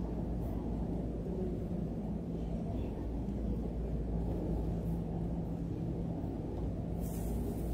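Footsteps echo softly across a large hall.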